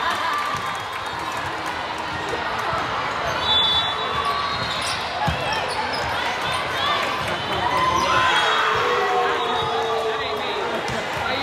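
Young women shout and cheer in a large echoing hall.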